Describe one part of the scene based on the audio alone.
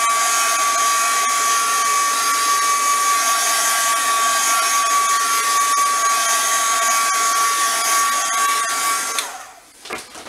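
A heat gun blows with a steady, high whir, then shuts off.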